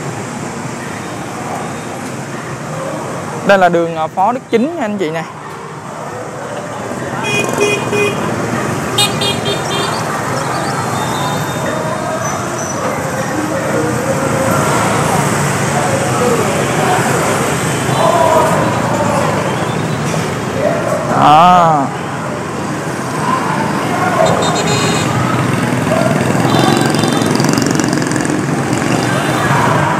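Motorbike engines hum and buzz past along a busy street outdoors.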